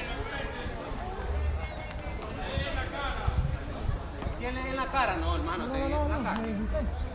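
Young men talk and call out to each other outdoors.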